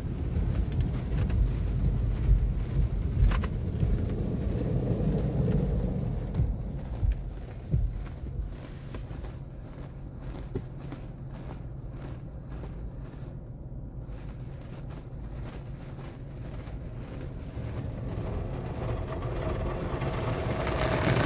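Large rotating brushes scrub and thump against a car's body.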